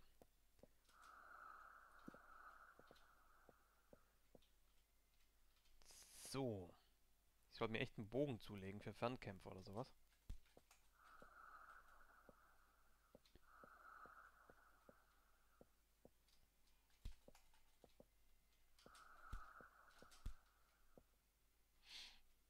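A fiery creature breathes with a low, rasping hiss.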